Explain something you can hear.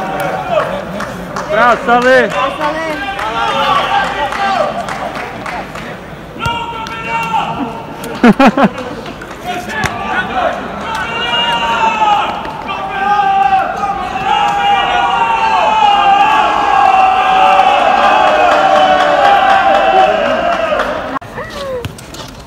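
A crowd of young people nearby shouts and cheers loudly.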